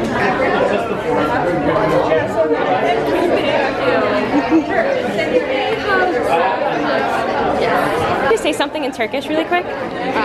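Several voices chatter in a busy room.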